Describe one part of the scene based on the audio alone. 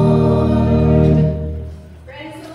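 A choir holds a final sung note in an echoing hall.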